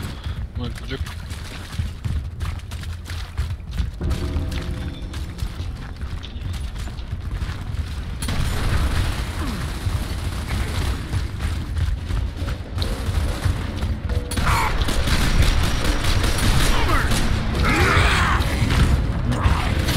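Heavy boots thud on stone as an armoured soldier runs.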